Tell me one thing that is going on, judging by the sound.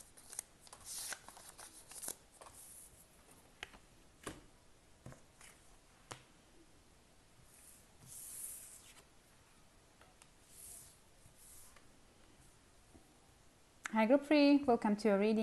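Cards slide and tap softly on a table.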